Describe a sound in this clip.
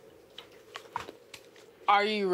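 Laptop keys click as someone types.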